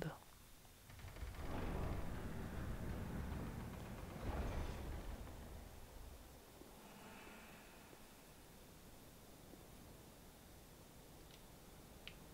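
Armoured footsteps clank on stone paving.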